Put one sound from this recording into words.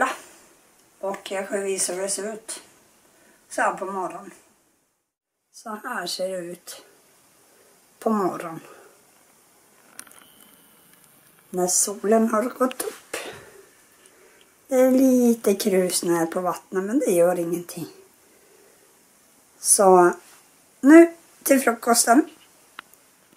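A young woman speaks calmly and close up, with pauses.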